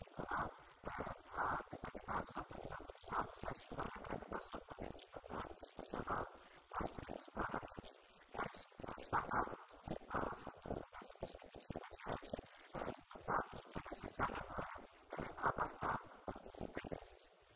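A man speaks steadily into a microphone, heard through a loudspeaker in a room.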